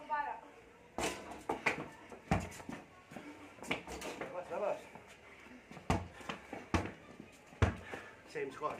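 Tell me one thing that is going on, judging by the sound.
A basketball bounces on hard ground with sharp thuds.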